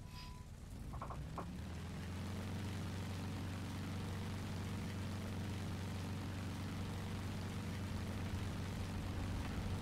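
A propeller engine revs up and roars loudly.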